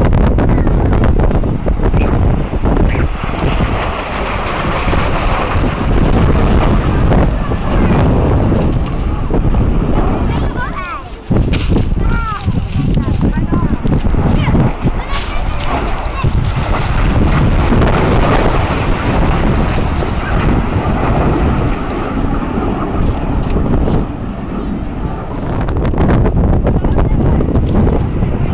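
Propeller planes drone overhead, the engine noise rising and falling as they pass.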